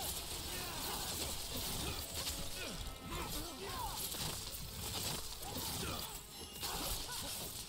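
Magic blasts crackle and whoosh during a fight.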